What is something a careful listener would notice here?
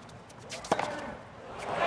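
A tennis ball is struck sharply.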